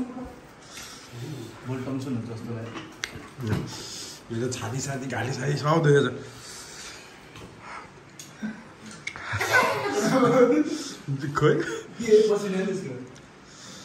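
A young man gulps water from a bottle.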